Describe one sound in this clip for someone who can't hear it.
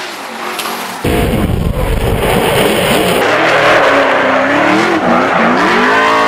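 Tyres squeal on asphalt.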